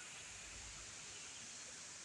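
Fish splash softly at the surface of a pond.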